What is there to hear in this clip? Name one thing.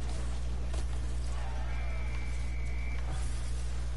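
A crowd cheers after a goal.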